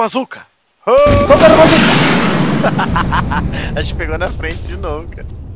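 A heavy gun fires with a loud boom that echoes away.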